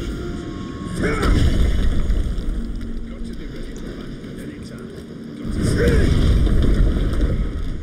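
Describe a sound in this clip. A ghostly rushing whoosh sweeps past.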